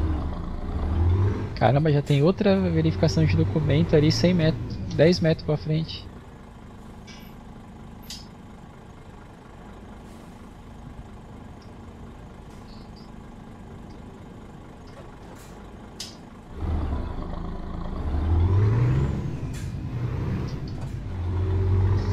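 A truck engine rumbles steadily, rising and falling in pitch.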